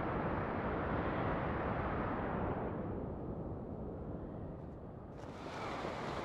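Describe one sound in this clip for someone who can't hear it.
Wind rushes loudly past during a fast fall, then eases.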